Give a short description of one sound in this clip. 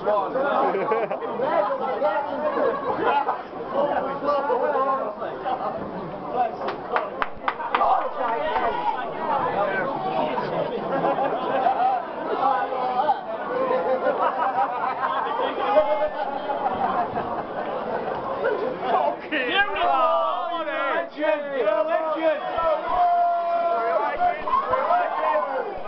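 A crowd of men and women chatter throughout a large, echoing hall.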